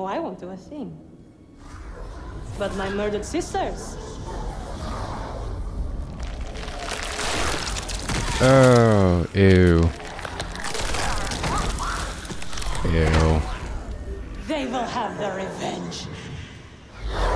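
A young woman speaks in a low, menacing voice.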